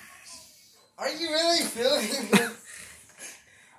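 A teenage boy laughs loudly nearby.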